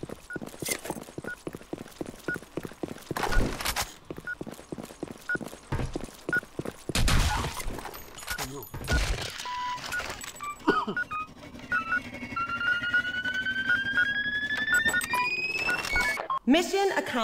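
A bomb beeps steadily, faster and faster.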